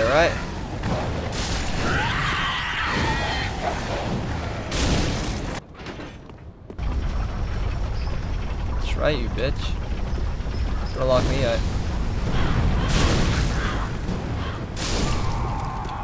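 Fireballs whoosh and burst with a roar.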